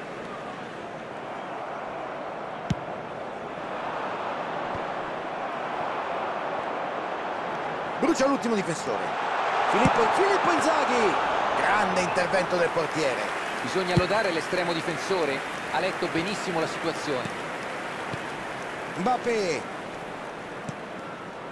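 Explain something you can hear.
A stadium crowd roars and murmurs steadily.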